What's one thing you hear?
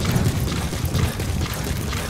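A fire crackles in a metal barrel.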